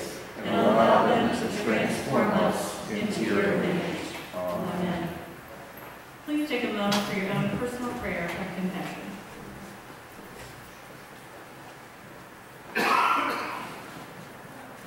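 A young woman sings into a microphone in an echoing hall.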